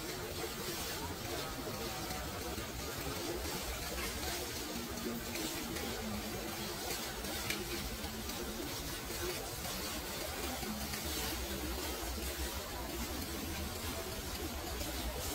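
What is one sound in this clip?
Water flows and gurgles gently outdoors.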